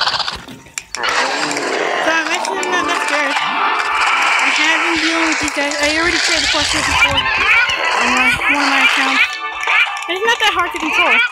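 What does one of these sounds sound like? Cartoonish game sound effects pop and chirp rapidly.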